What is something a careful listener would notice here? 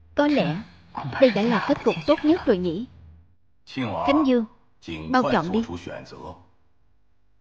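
A man speaks slowly and gravely, close by.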